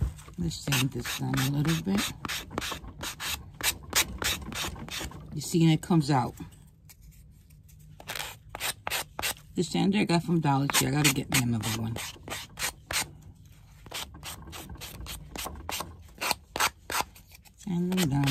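A sanding block rasps against the edge of a paper tag.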